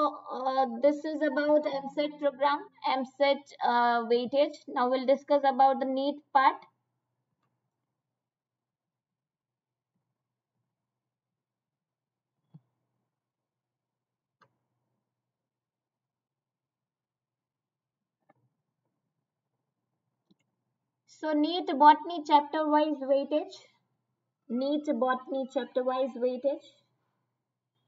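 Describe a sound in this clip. A young woman speaks calmly into a microphone, with long pauses.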